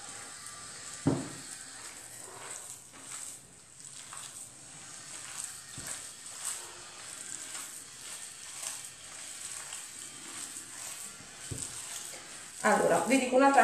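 Hands squelch as they knead raw minced meat in a bowl.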